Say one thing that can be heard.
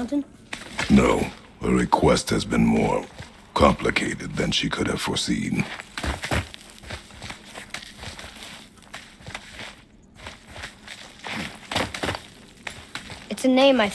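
Hands and boots scrape and knock against rock during a climb.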